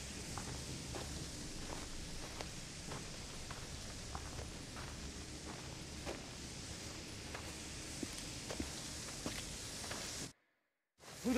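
Footsteps crunch on loose ground at an even pace.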